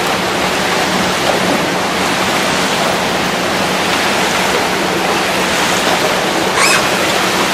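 A woman shouts out with effort in a large echoing hall.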